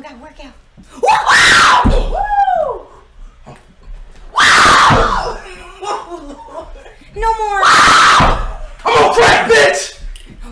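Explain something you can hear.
A group of young people shouts and cheers in a room.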